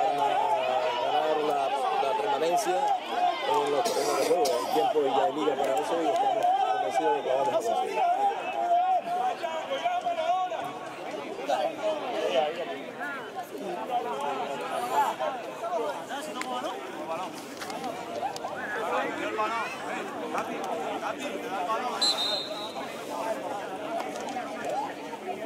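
Distant players shout and call out across an open outdoor pitch.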